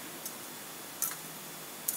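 A small metal vessel clinks briefly.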